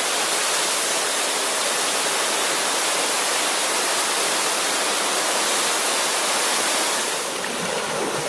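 A waterfall splashes and rushes nearby.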